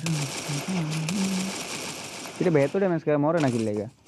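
Gunshots crack from a rifle.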